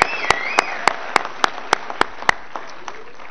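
A man claps his hands steadily.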